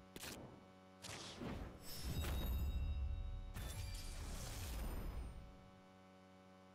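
A game pack reveal whooshes and swells.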